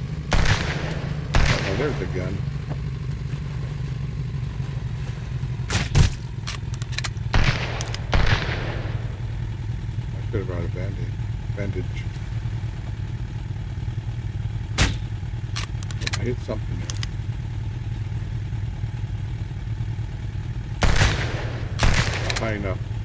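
A gun fires single loud shots now and then.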